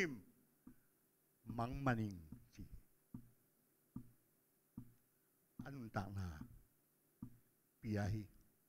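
An elderly man speaks slowly and deliberately into a microphone, heard through a loudspeaker.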